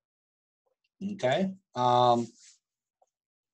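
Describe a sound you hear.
A middle-aged man speaks briefly and calmly into a microphone, heard close.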